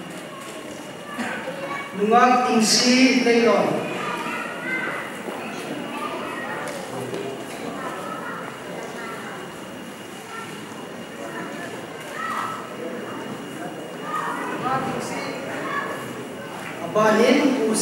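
A man speaks through a microphone into a large echoing hall.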